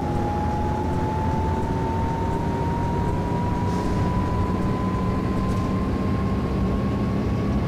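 A bus engine hums steadily and slowly rises in pitch as the bus speeds up.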